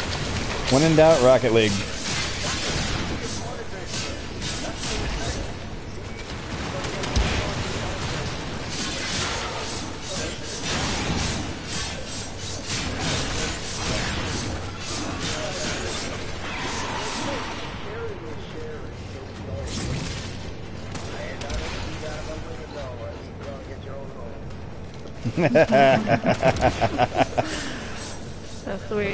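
Energy weapons fire in rapid bursts, with sharp zaps and blasts.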